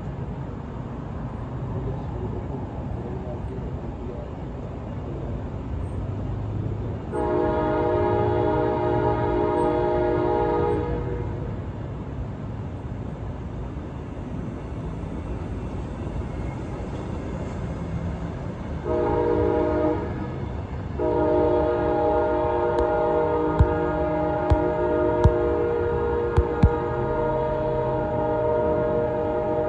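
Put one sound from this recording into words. A passenger train rumbles past close by on the tracks.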